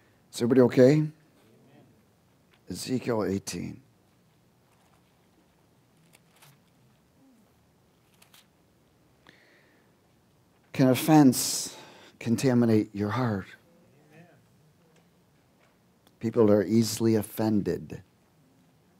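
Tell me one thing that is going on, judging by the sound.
A middle-aged man speaks calmly into a microphone in short phrases with long pauses.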